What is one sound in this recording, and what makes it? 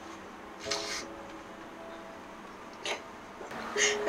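A woman sobs and weeps nearby.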